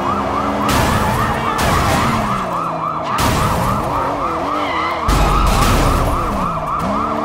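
Tyres screech as a car skids on the road.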